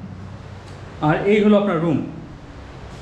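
A woman speaks briefly and casually nearby.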